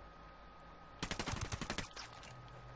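Rapid gunfire bursts close by.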